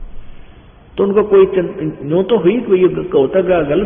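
An elderly man speaks calmly through a microphone.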